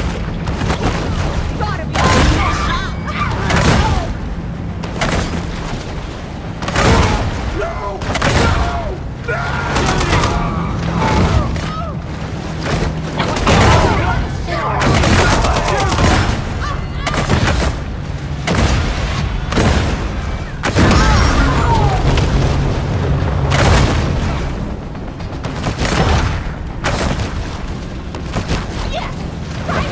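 A motorboat engine drones.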